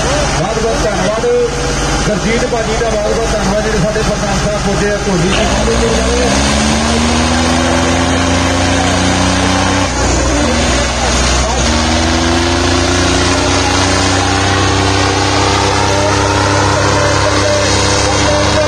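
Diesel tractor engines rev hard under heavy load.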